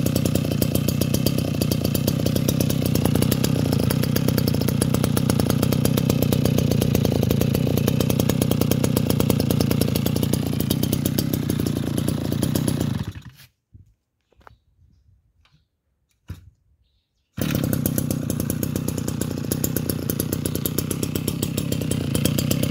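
A small two-stroke engine idles with a fast, steady putter.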